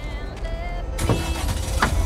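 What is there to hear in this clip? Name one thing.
A van door slams shut.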